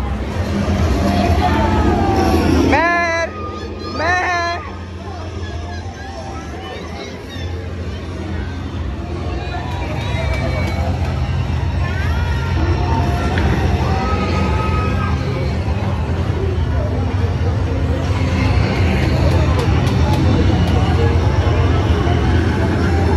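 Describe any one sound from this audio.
A crowd of people chatter in the background.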